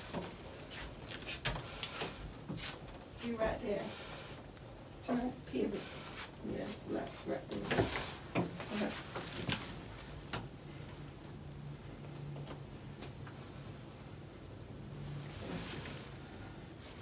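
A television plays in the room.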